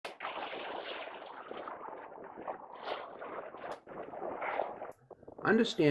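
Water splashes and rushes against a sailboat's hull.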